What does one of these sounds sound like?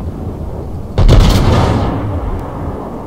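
Heavy naval guns fire with a loud, deep boom.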